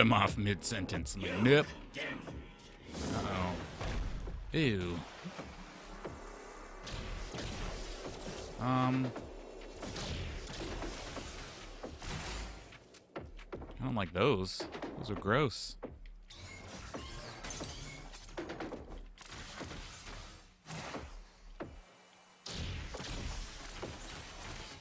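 Energy blasts whoosh and boom repeatedly.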